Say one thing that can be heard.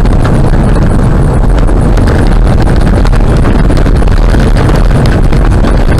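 A car drives fast along a gravel road, its tyres rumbling and crunching.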